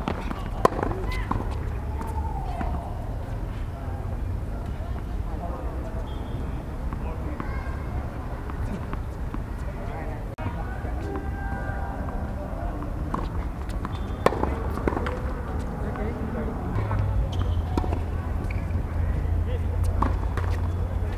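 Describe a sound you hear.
Tennis rackets strike a ball with sharp pops.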